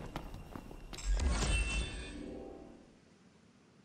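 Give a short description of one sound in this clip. A bright musical chime rings out and slowly fades.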